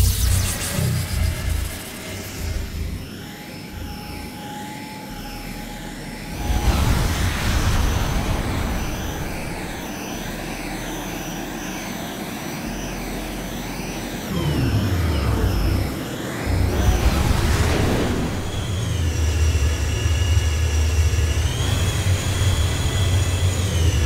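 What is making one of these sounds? A spaceship's engines roar and whoosh as it flies.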